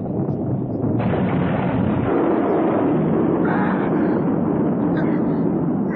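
A huge explosion booms and roars.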